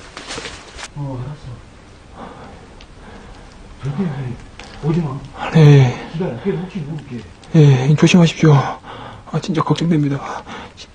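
A man talks nearby in a low voice.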